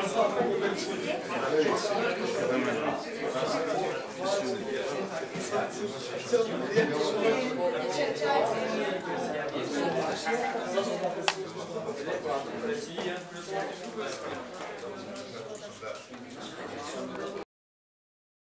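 Several men and women chat at once in a room with some echo.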